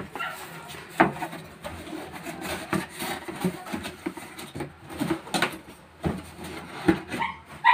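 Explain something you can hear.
Cardboard flaps thump as they are pressed into place.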